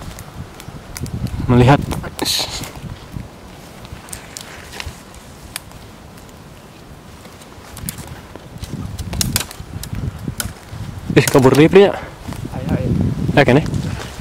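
Wind gusts rustle through tree leaves.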